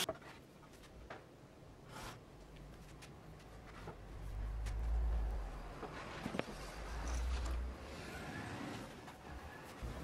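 Wooden pieces knock against a tabletop.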